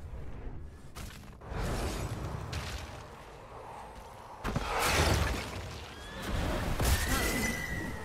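Game combat effects crackle and boom as characters fight.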